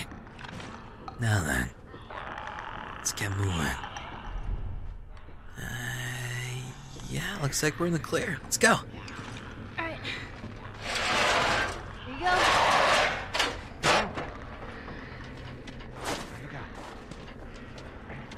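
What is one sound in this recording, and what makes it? Boots clang on metal grating and stairs.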